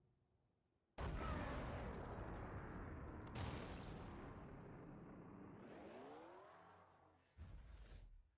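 A missile roars as it streaks downward.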